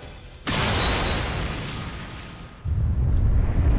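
A powerful magical blast bursts with a loud whoosh and slowly fades.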